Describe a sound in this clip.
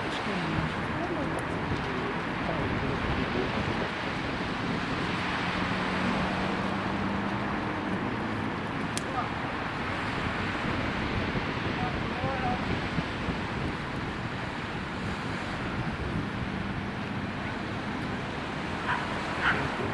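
Waves wash onto a pebble beach far below.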